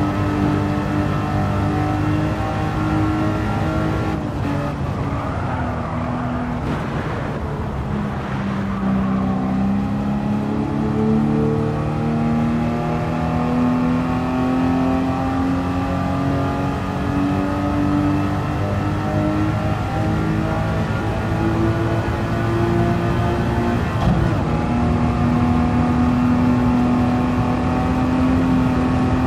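A racing car engine roars loudly at high revs.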